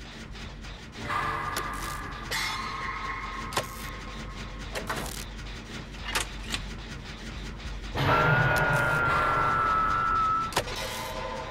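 A short warning tone sounds.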